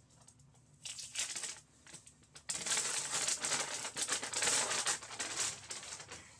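Paper crinkles and rustles loudly as it is peeled away.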